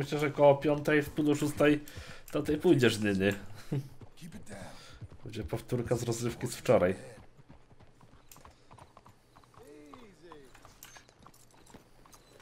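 Horse hooves clop on a dirt road.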